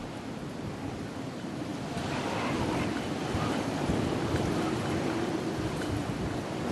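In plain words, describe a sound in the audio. Wind rushes steadily past a glider drifting down through the air.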